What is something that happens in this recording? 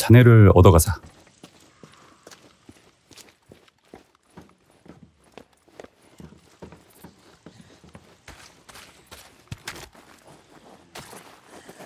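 Footsteps crunch slowly over debris.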